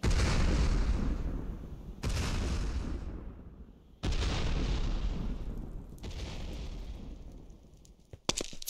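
Loud crackling blasts burst out every two seconds and fade away.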